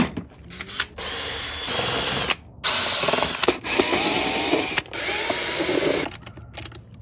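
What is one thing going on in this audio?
A cordless drill whirs in loud bursts as it drives screws.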